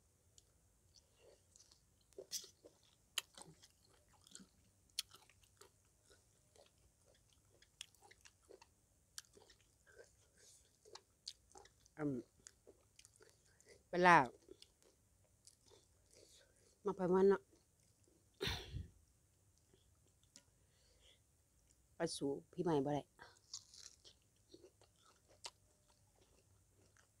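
A young woman chews and crunches food close up.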